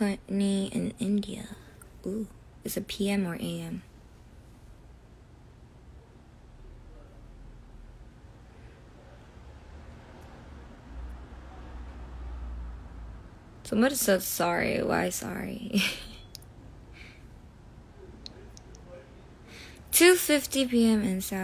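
A young woman speaks softly and casually, close to the microphone.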